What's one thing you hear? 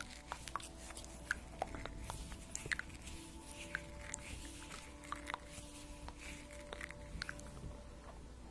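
Small crisp clicks and taps come close to a microphone.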